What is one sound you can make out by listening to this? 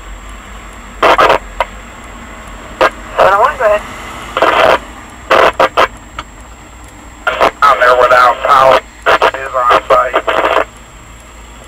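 A fire truck's siren wails in short, loud bursts as it passes.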